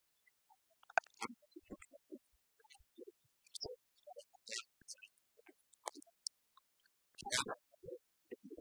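Keyboards click and tap.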